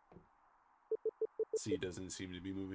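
Quick electronic beeps blip in a rapid run.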